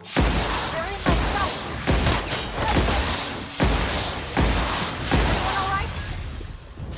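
Gunshots ring out in quick, loud bursts.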